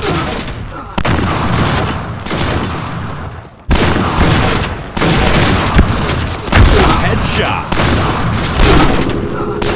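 Shotgun blasts boom and echo.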